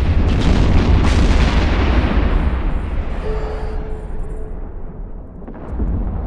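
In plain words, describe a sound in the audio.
A deep explosion booms and slowly fades into a low rumble.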